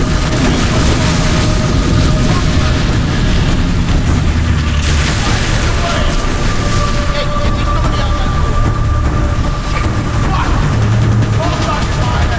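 Heavy rain pours down steadily.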